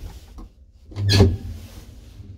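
An elevator button clicks once.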